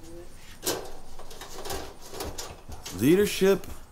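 A metal grill clanks and scrapes.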